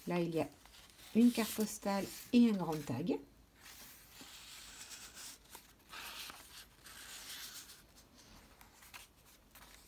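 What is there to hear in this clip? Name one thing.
Paper cards rustle and slide as they are handled.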